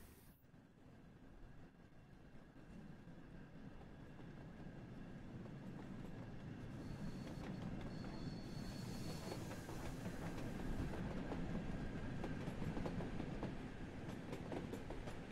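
A steam train rumbles closer and grows steadily louder.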